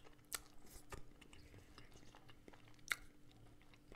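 A crisp crust scoops through soft casserole close to a microphone.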